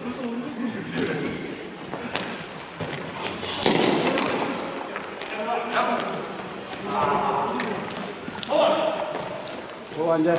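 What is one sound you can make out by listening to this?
Sticks clack against a ball on the ice.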